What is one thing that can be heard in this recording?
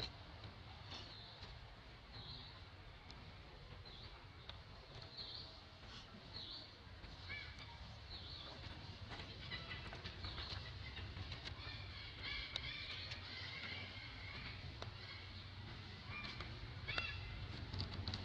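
A baby monkey squeaks and chirps in short, high calls.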